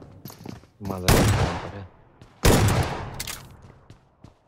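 Gunfire bursts loudly in a video game.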